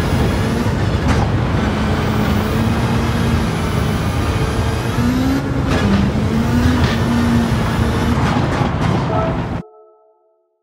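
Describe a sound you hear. A rally car engine roars and revs at high speed.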